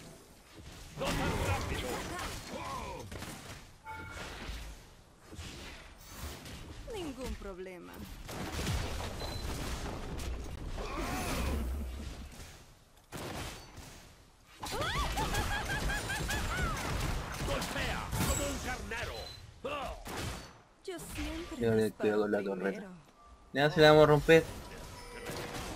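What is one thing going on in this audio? Blows and magic blasts crash in short bursts during a fight.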